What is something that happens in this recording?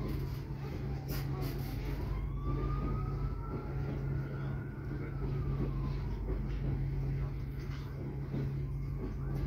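Train wheels knock over rail joints.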